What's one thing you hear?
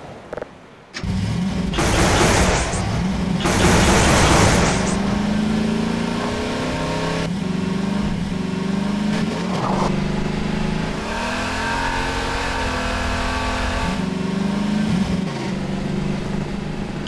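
A buggy engine starts up and roars, revving as it drives.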